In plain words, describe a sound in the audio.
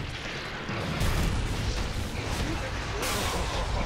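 A deep explosion rumbles.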